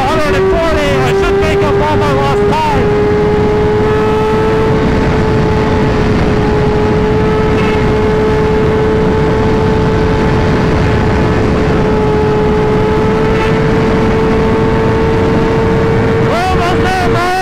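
A motorcycle engine drones at a steady high pitch at speed.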